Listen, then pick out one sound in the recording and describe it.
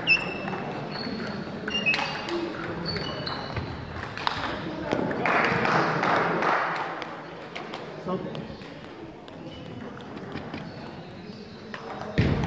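Voices murmur and clicks echo in a large indoor hall.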